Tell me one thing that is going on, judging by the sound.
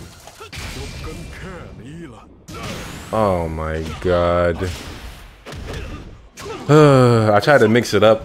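A young man talks and exclaims close to a microphone.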